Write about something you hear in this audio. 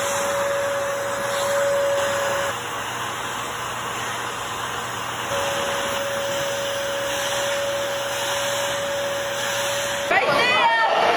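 A vacuum cleaner hums steadily.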